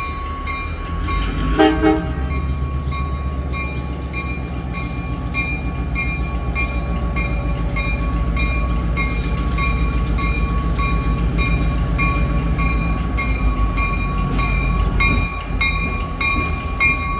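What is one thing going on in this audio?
A diesel locomotive rumbles as it slowly approaches.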